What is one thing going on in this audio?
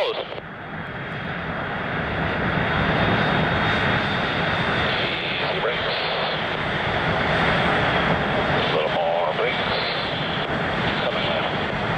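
A jet engine roars loudly and steadily nearby.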